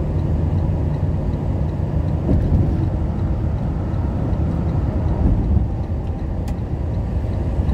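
A truck engine rumbles steadily from inside the cab.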